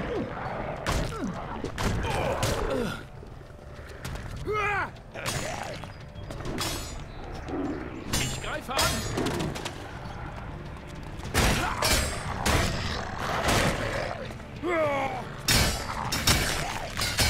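Swords slash and clang in a fight.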